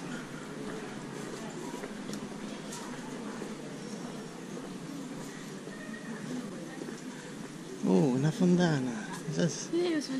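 People chat in a murmur along a street outdoors.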